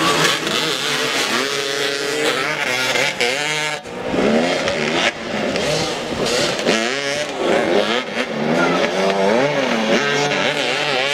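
Motorcycle engines rev loudly, rising and falling in pitch.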